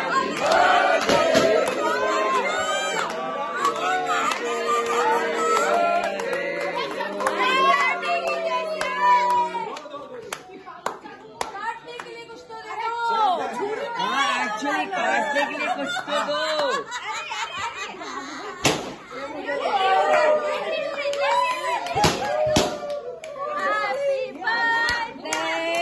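A group of people cheer and shout excitedly.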